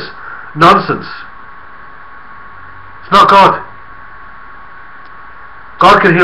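A middle-aged man speaks calmly in short bursts.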